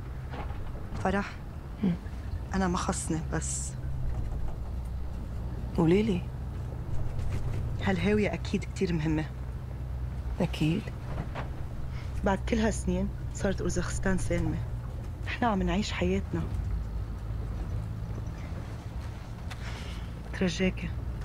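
A young woman speaks calmly and close by.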